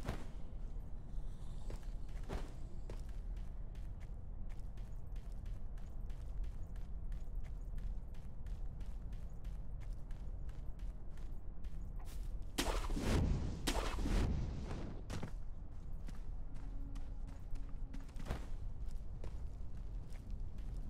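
Footsteps patter quickly over leaves and undergrowth.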